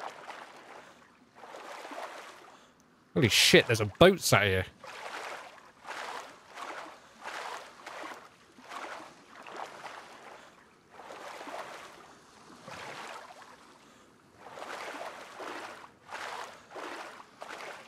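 Water splashes in a steady rhythm of swimming strokes.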